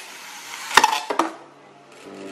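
Spinning tops snap loose from their launchers with sharp clicks.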